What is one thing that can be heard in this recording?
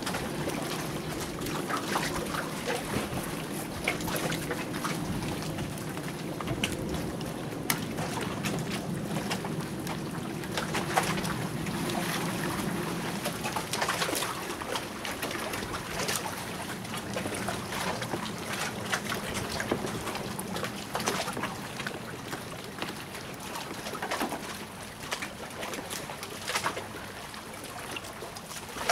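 A knife taps and knocks against a wooden board.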